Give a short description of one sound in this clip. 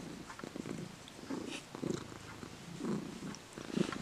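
A hand strokes a cat's fur close by with a soft rustling.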